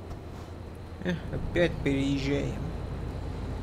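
A young man speaks briefly into a close microphone.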